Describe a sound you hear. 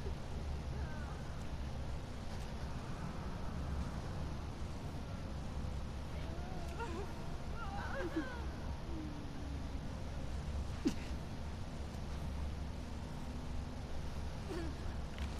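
Dry leaves rustle softly underfoot.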